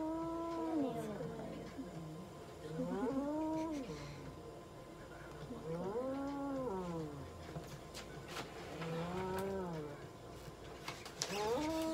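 A cat meows loudly in long, wailing cries, again and again.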